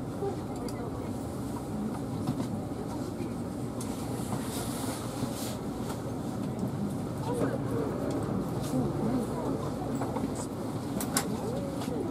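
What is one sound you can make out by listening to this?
A train idles with a steady low hum.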